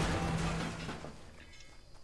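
Wooden building pieces clatter into place.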